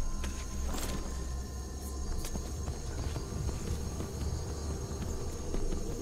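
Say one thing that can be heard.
A horse's hooves thud along at a steady trot.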